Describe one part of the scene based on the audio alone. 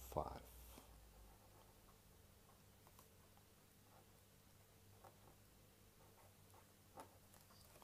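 A pen scratches faintly on paper.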